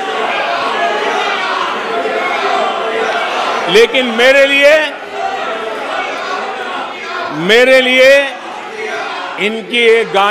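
A crowd of men talks and murmurs in a large hall.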